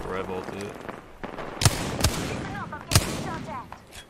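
Gunshots fire in a few sharp bursts.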